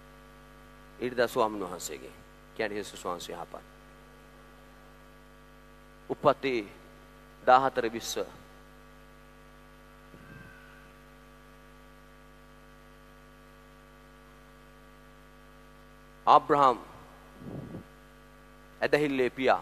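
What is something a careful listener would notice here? A man speaks into a microphone with animation, in short bursts with pauses, heard through loudspeakers in a large echoing hall.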